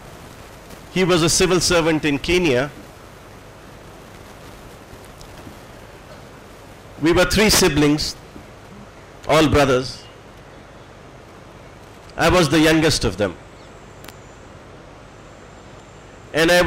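An elderly man speaks through a microphone in short phrases with long pauses.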